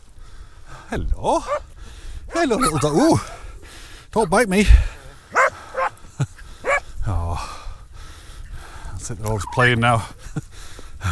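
A young woman calls out brightly to dogs close by.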